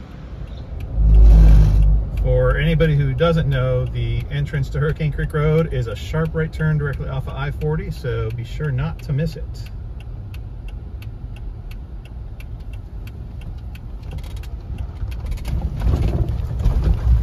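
A car engine rumbles steadily.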